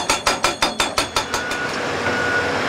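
A hydraulic hammer pounds rock in rapid blows.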